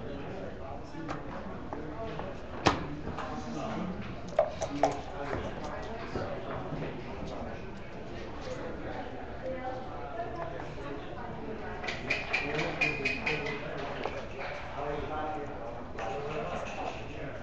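Game pieces click as they are moved on a board.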